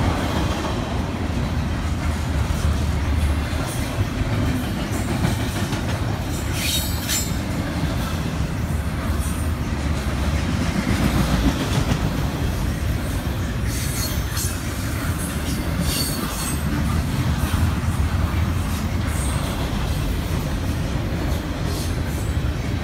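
Freight train wheels clatter over rail joints.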